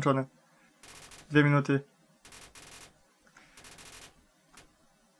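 Short electronic blips tick rapidly.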